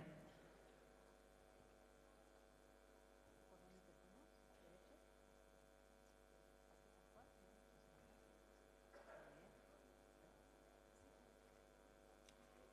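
A large audience murmurs quietly in a big echoing hall.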